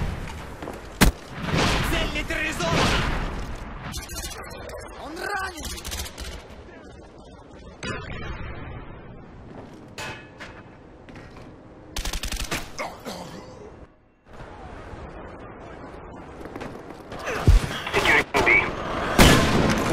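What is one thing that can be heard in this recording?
Gunshots crack sharply in short bursts.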